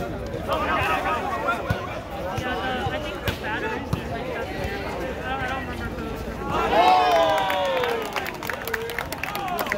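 Players' sneakers squeak and shuffle on a hard court.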